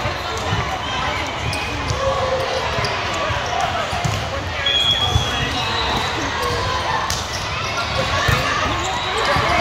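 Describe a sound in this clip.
A volleyball is hit with sharp slaps.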